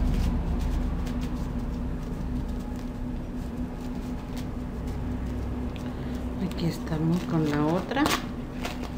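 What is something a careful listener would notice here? Corn husks rustle and tear as they are peeled by hand.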